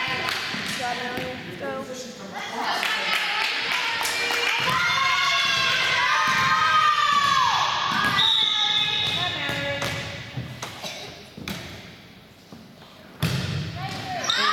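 A volleyball is struck with a smack.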